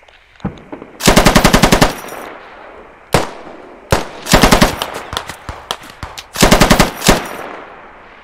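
Automatic gunfire rattles in rapid bursts nearby.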